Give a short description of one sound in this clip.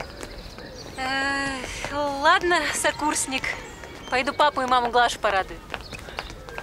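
A woman speaks brightly nearby.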